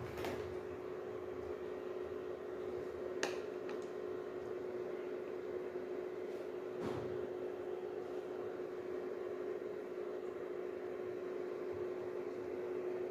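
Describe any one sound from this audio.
An electric hob hums steadily.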